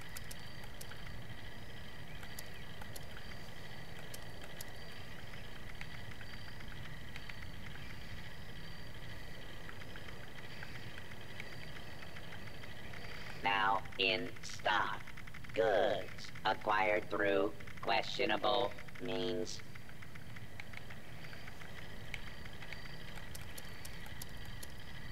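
Soft menu clicks tick as a selection moves through a list.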